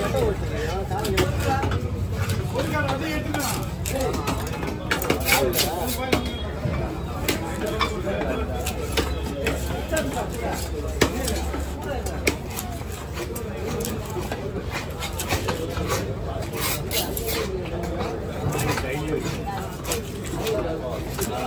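A knife taps and chops against a wooden block.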